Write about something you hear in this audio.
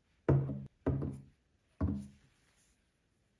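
Glass perfume bottles clink as they are set down on a tabletop.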